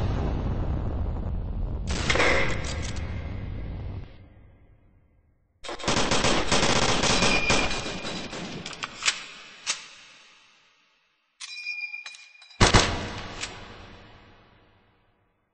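A submachine gun fires rapid bursts with loud echoing cracks.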